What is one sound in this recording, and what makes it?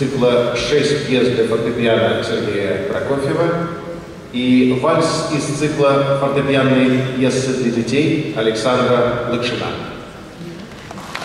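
A grand piano plays a lively piece in a large echoing hall.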